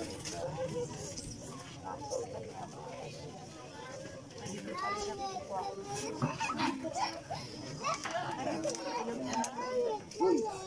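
A crowd of men and women talks and murmurs nearby, outdoors.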